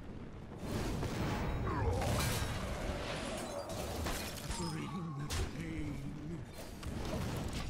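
Magical chimes and impact effects ring out from a card game.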